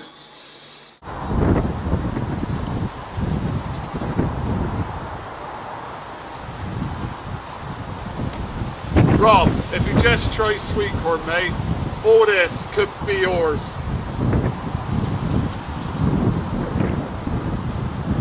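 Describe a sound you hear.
Wind rumbles and buffets the microphone outdoors.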